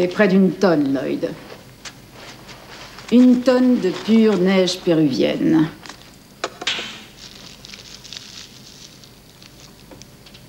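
Paper wrapping crinkles and tears as hands pull it open.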